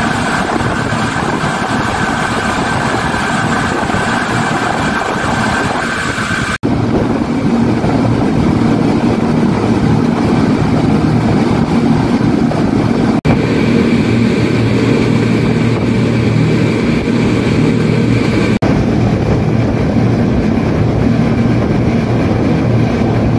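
Outboard engines roar steadily as a speedboat races along.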